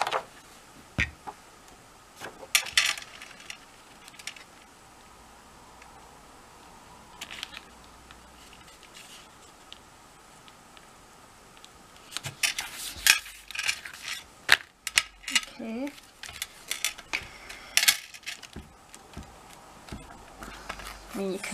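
Paper sheets rustle and tap against a table.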